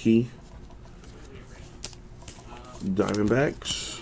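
Trading cards rustle and tap as hands shuffle them close by.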